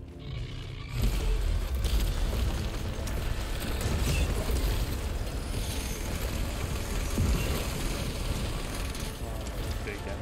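Rapid gunfire rattles and blasts loudly.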